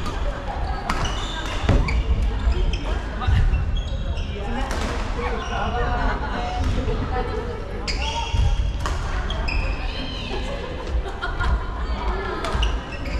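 Sports shoes squeak sharply on a wooden floor.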